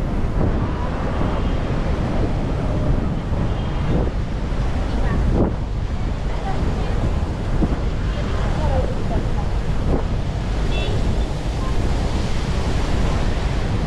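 City traffic hums steadily nearby outdoors.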